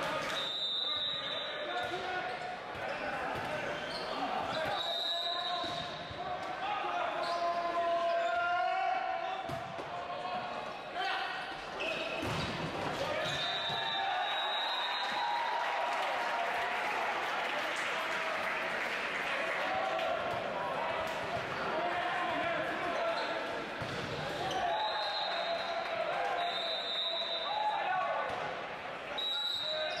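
Volleyball players shout and call to each other in a large echoing hall.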